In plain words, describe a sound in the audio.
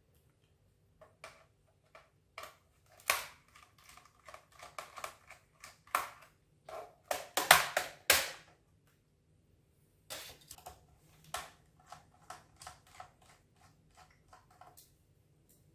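A small screwdriver clicks and scrapes while turning screws.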